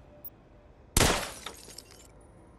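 A gun fires once with a loud bang.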